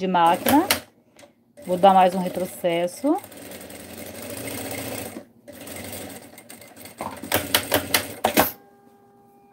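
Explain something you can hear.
A sewing machine whirs as it stitches.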